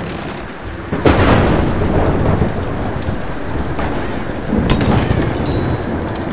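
A fire bursts into a roaring blaze.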